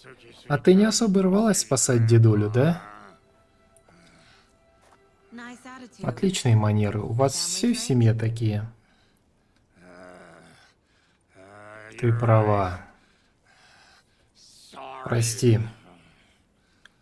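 An elderly man speaks in a low, gravelly voice.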